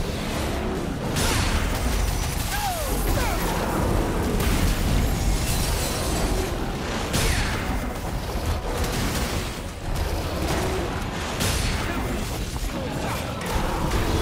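A sword slashes and clangs against a huge beast in rapid, repeated strikes.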